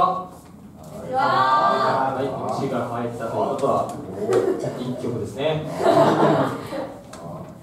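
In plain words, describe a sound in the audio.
An electric guitar plays in a live band.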